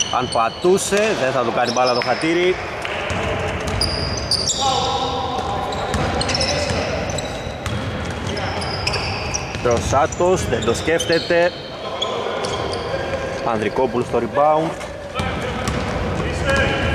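A basketball bounces on the court with hollow thuds.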